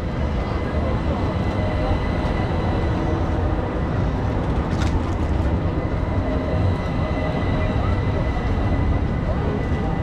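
A tram hums as it passes close by.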